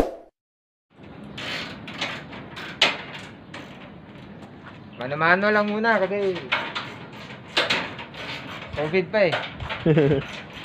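Metal parts clank and rattle as a crate is taken apart.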